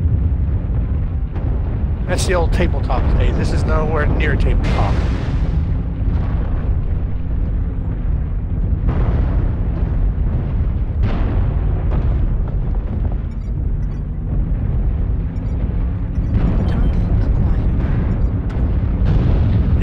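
A heavy machine rumbles low and steady throughout.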